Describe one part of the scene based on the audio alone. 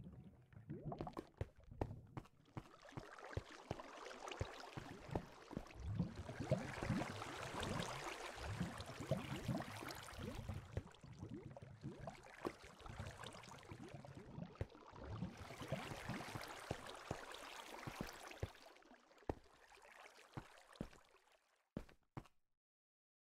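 Footsteps crunch on gravel and stone.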